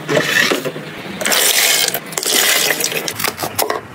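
Food scraps drop from a cup into a bin basket.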